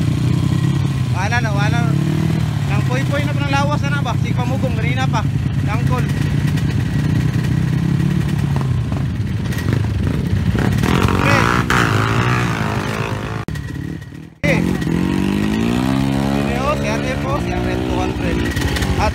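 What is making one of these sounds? Dirt bike engines idle and rumble close by.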